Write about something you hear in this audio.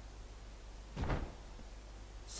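A heavy chest thumps down onto a floor.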